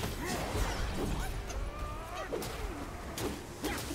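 A puff of smoke bursts with a soft boom.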